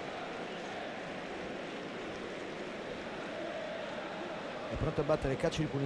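A large stadium crowd murmurs and chants steadily in the distance.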